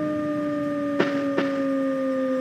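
Train wheels clack twice over rail joints.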